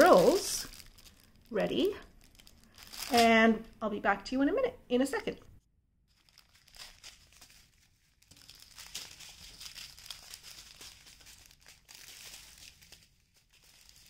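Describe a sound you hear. Plastic packets rustle and crinkle as they are handled.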